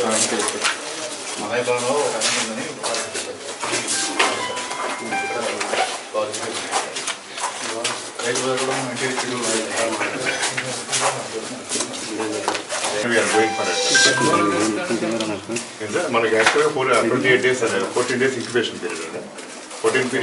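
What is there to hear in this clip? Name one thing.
Several men talk with animation close by, their voices overlapping.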